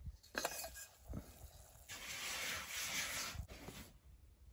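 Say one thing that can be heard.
A kettle hisses and bubbles on hot coals.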